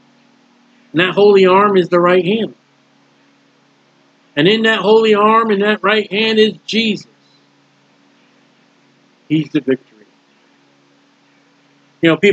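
A middle-aged man speaks calmly and closely into a microphone, in short bursts with pauses.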